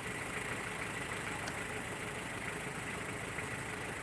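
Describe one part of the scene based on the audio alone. A truck's door slams shut.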